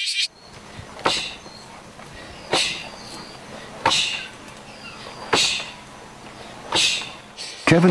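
A fist thuds against a rope-wrapped striking post.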